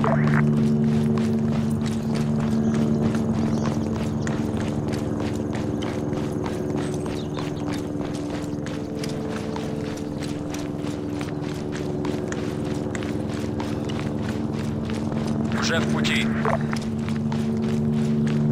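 Footsteps crunch steadily on dry dirt and gravel.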